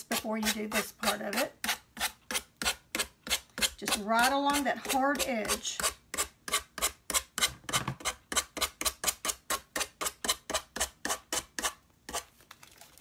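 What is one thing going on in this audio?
A sanding stick rasps quickly back and forth along the edge of a board.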